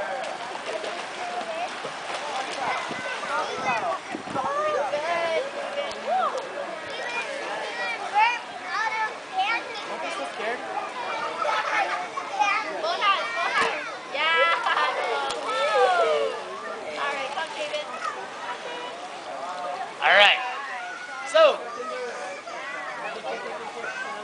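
Young children shout and chatter around a pool.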